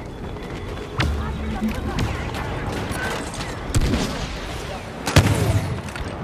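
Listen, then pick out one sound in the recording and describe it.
Blaster shots fire with sharp loud bursts.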